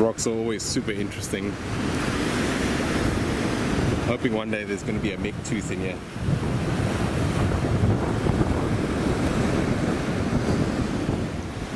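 Sea waves break on a rocky shore.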